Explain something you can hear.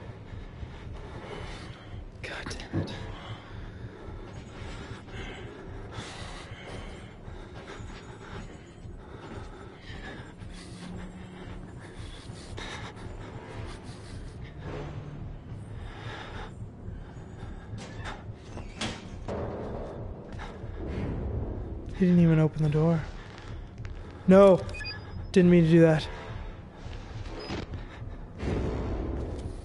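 A young man talks close to a microphone, quietly at first.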